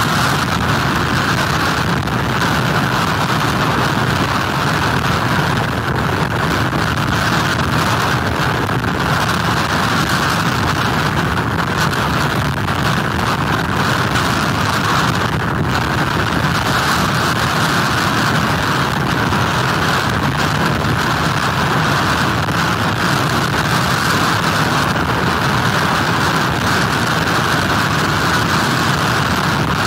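Strong wind roars and buffets steadily.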